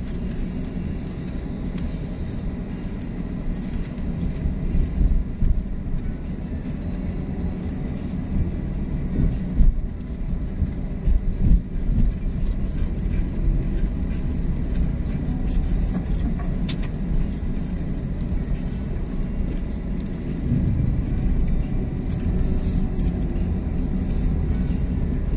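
A vehicle's engine rumbles steadily as it drives along a road.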